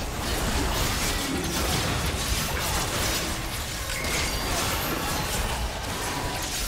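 Magic spells and hits crackle and thump in a fantasy battle game.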